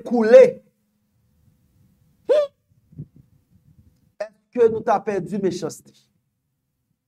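A man talks with animation into a microphone, in short bursts.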